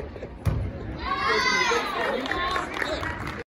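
Spectators cheer and whoop after the landing.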